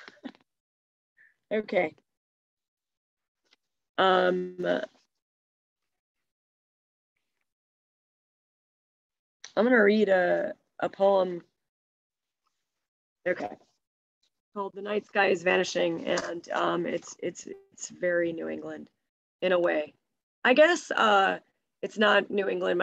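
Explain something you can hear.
A middle-aged woman speaks calmly in pauses, heard through an online call.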